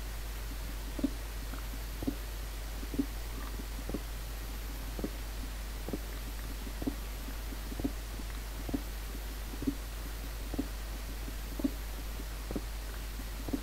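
Footsteps crunch steadily on gravelly ground.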